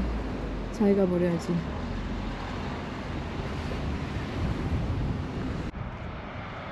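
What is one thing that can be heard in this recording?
Car engines idle nearby in slow traffic.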